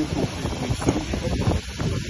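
A metal spatula scrapes and taps on a glass slab.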